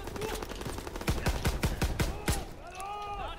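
Gunshots fire in rapid bursts, loud and close.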